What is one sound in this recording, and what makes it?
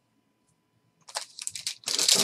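A foil card pack crinkles as it is torn open.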